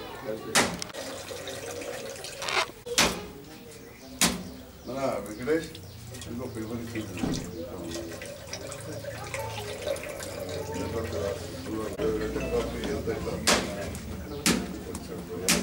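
Water splashes into a metal bowl.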